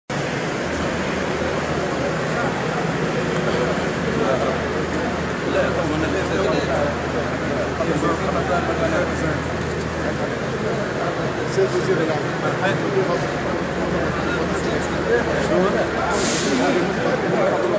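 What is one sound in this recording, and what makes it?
A crowd of men talk over one another nearby in an echoing room.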